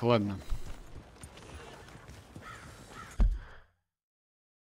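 A horse's hooves thud on soft dirt at a walk.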